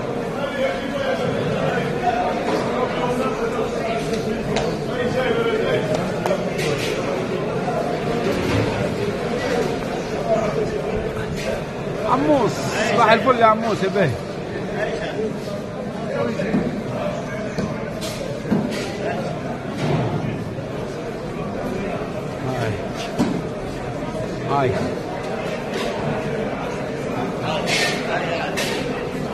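A crowd of people chatters in a large echoing hall.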